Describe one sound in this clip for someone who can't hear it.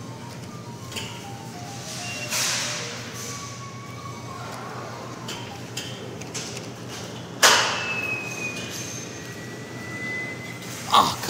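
A claw machine plays electronic beeping tones.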